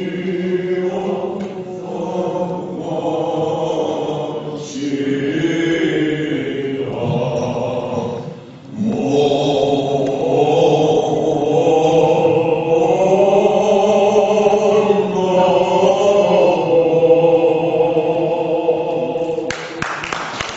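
Several men recite together in unison through a microphone in an echoing hall.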